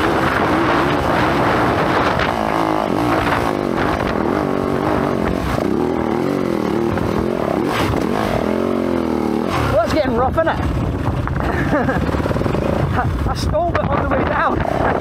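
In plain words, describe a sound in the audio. A dirt bike engine revs and roars up and down as it climbs.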